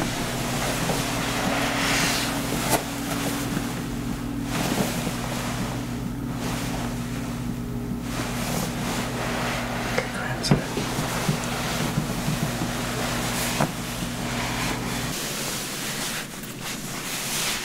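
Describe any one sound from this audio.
A towel rubs and rustles against wet hair.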